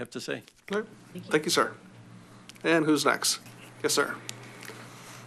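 An elderly man speaks into a microphone.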